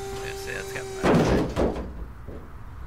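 A wooden table crashes and clatters into a metal skip.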